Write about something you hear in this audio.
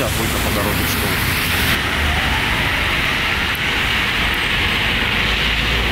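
Tyres hiss steadily on a wet road as traffic passes.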